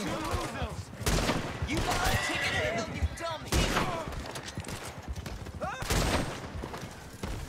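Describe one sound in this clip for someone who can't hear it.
Gunshots ring out sharply, a few seconds apart.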